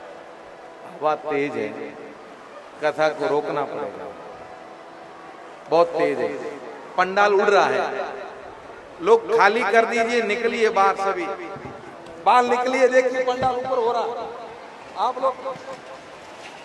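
A middle-aged man preaches with animation through a microphone.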